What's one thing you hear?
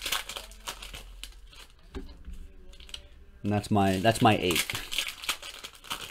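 A foil card wrapper crinkles in hands.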